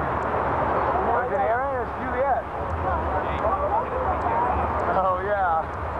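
Men call out to each other in the distance.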